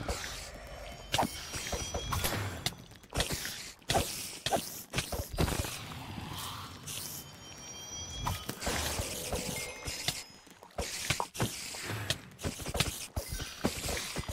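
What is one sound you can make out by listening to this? Spiders hiss and chitter.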